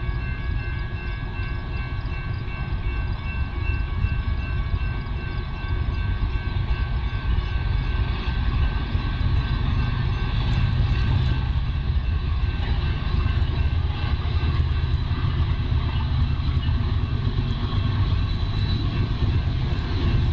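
A train rumbles closer, growing louder.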